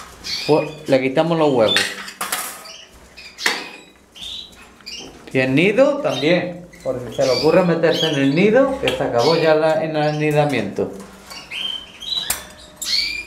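A hand rattles a wire cage door.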